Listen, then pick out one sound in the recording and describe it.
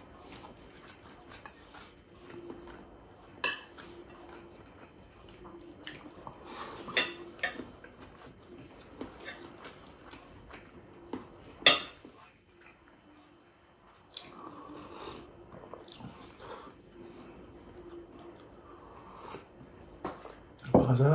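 A man chews and smacks his lips close by.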